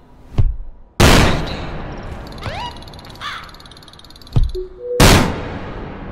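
A ball explodes with a loud bang.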